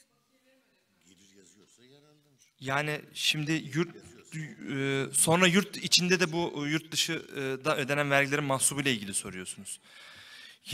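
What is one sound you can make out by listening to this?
A middle-aged man speaks calmly into a microphone, heard over loudspeakers in a hall.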